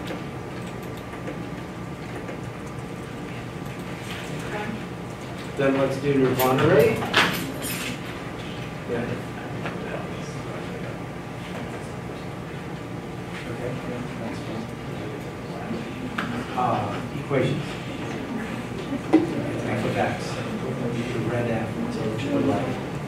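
An older man talks calmly nearby.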